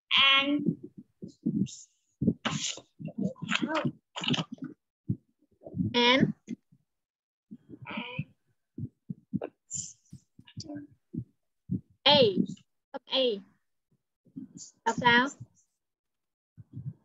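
A young woman speaks clearly and with animation over an online call.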